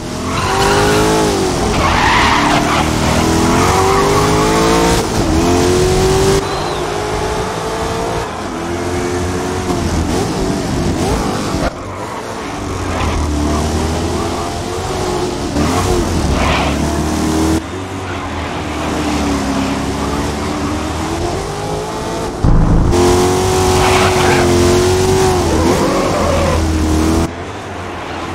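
A racing car engine roars loudly, its pitch rising and falling as it shifts gears.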